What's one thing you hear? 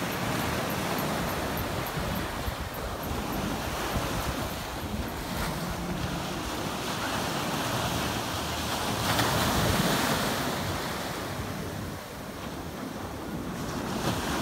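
Waves break and wash onto the shore close by.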